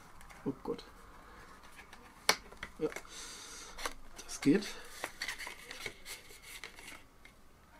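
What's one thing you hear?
Cardboard sleeves rustle and scrape as they are handled.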